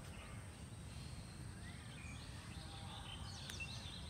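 Footsteps thud softly on grass close by.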